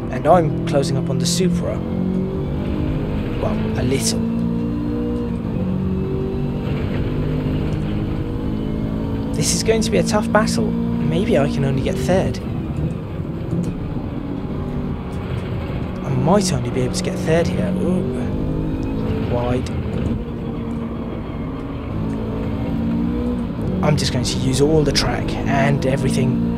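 A racing car engine roars steadily, rising and falling in pitch as gears change.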